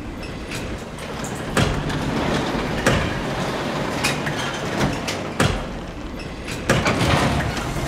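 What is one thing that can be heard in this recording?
A heavy metal panel scrapes and rattles as it is lifted.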